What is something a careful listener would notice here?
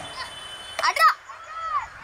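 A cricket bat hits a ball with a sharp crack.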